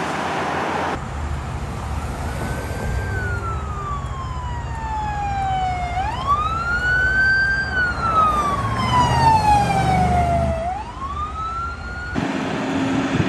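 A siren wails, rising and falling slowly.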